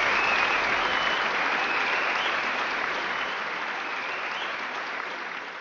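A large crowd applauds and cheers in a big echoing hall, slowly fading.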